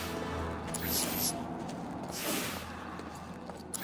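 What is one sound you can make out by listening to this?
Footsteps tap on a wet street.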